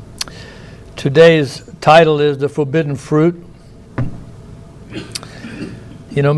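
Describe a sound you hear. A middle-aged man speaks slowly and deliberately into a microphone, in a room with a slight echo.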